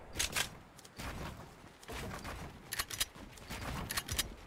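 Wooden structures clatter as they are quickly built.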